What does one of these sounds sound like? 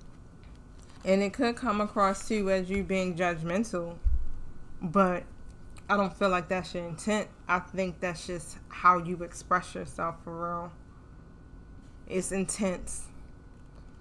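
A young woman speaks calmly and thoughtfully close to a microphone.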